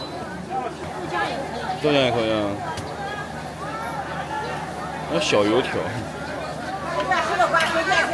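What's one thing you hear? Oil sizzles and bubbles in a large frying pan.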